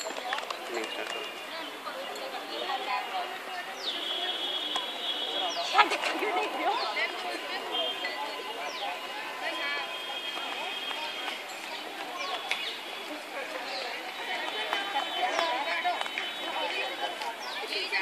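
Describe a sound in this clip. Young girls chatter and laugh nearby as they play.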